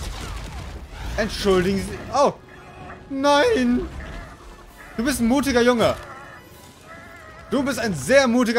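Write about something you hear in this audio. A young man grunts and shouts with strain.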